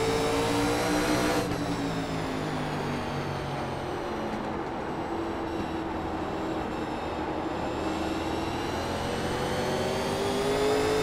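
A race car engine roars close by, its pitch falling as it slows for a corner and rising again as it speeds up.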